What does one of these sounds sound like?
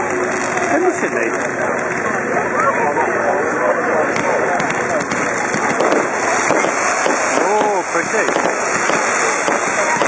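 Fireworks whistle as they shoot into the sky.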